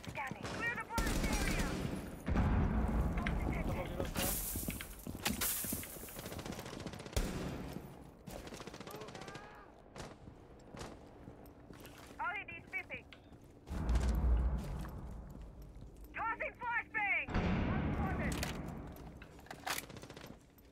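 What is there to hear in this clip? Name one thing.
Gunshots crack loudly and sharply, one at a time.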